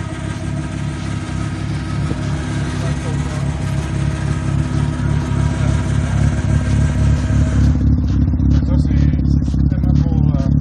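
A sports car engine idles with a deep, rough burble close by.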